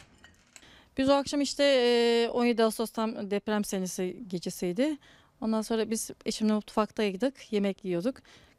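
A middle-aged woman speaks close into a microphone with animation.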